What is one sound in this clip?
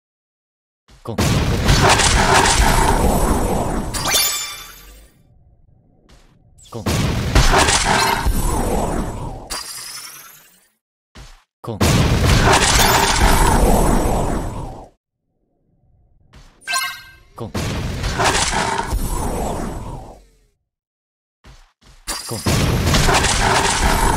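Loud blasts boom and roar in repeated bursts.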